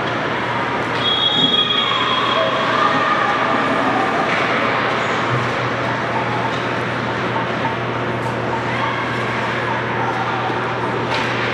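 Young players shout and call out in a large echoing rink.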